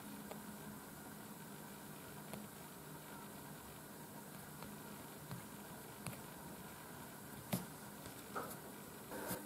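Fingertips tap and swipe lightly on a phone's glass.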